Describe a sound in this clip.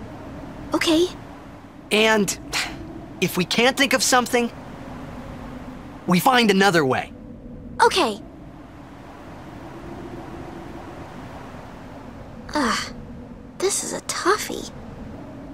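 A young woman speaks in a lively voice.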